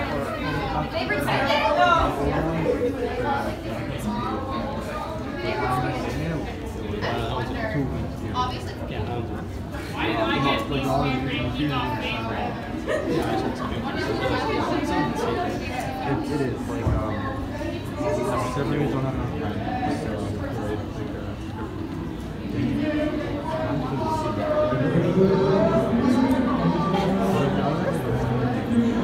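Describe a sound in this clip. A young woman speaks with animation to a group.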